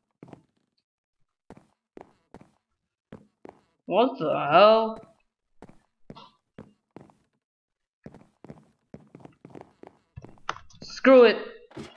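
Footsteps tap in a quick, uneven rhythm.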